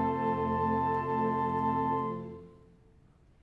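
A concert band holds a final chord in a large hall, then stops.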